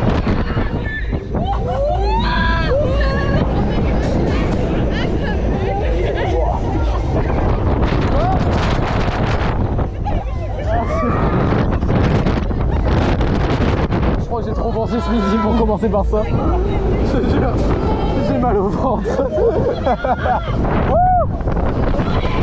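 Riders scream and shout with excitement.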